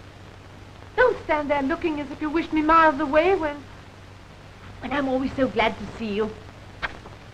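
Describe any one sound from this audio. A young woman speaks emotionally nearby.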